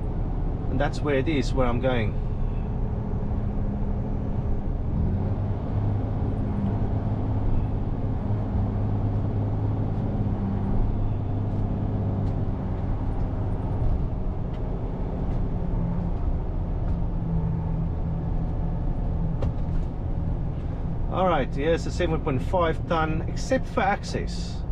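A lorry engine rumbles steadily from inside the cab.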